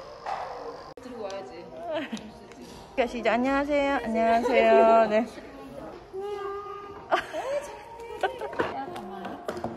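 A little girl talks and squeals in a high voice close by.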